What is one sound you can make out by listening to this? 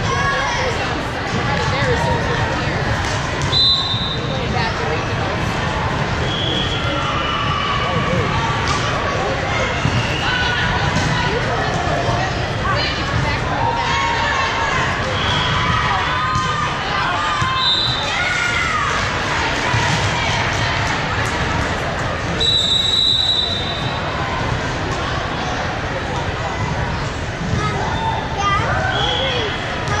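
A crowd of spectators and players chatters and calls out in a large echoing hall.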